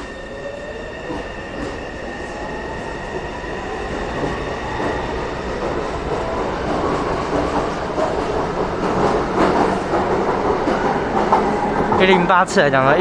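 A metro train pulls out of the station with a rising electric whine and a rumble.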